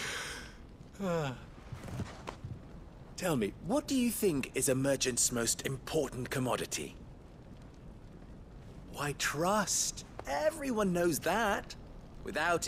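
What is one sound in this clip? Another young man answers with animation, in a lively tone.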